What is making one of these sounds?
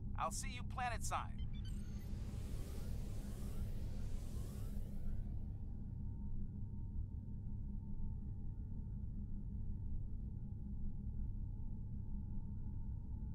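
A spaceship engine hums with a low, steady rumble.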